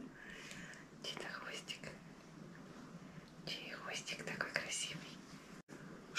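A middle-aged woman talks softly nearby.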